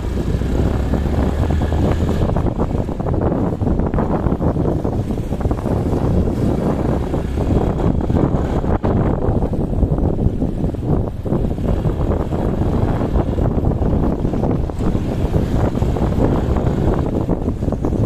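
Wind buffets loudly past a rider on a moving motorcycle.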